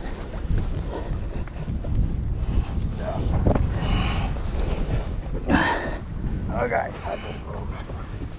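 A large fish thrashes and splashes in the water.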